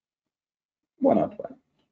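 A young man speaks briefly and calmly into a microphone.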